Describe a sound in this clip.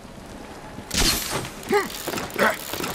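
A grappling launcher fires with a sharp snap.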